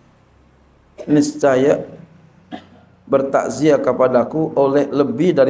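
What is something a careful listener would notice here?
A man speaks calmly into a microphone, heard through a loudspeaker.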